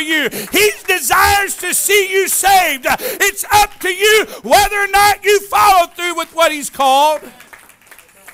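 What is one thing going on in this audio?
A man preaches loudly and passionately through a microphone in an echoing hall.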